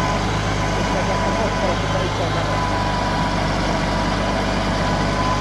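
A diesel forestry tractor engine runs as the tractor drives.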